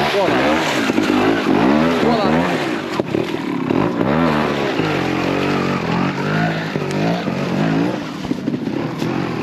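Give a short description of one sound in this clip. A motorbike engine revs up and down sharply, then fades as the bike moves away.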